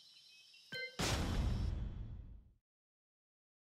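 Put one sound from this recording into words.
Glass shatters with a loud crash.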